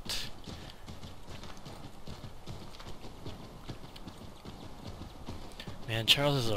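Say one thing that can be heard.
Horse hooves thud steadily on snow.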